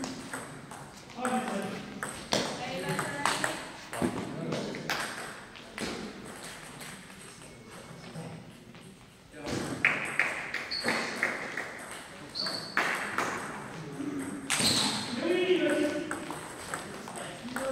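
A table tennis ball clicks quickly back and forth between paddles and the table in an echoing hall.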